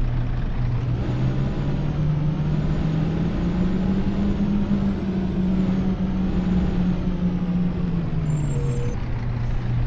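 A bus engine revs up as the bus pulls away, then settles back down.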